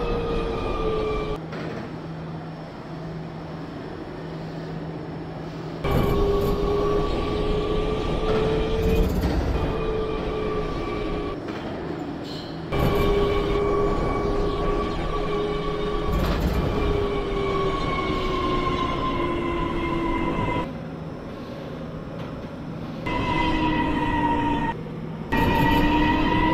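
A train's motors whine steadily, the pitch slowly sliding.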